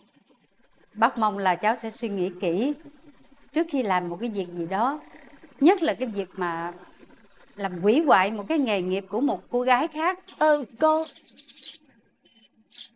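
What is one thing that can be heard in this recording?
A middle-aged woman speaks emotionally into a phone, close by.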